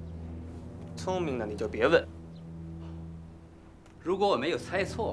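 A man speaks nearby in a raised, emotional voice.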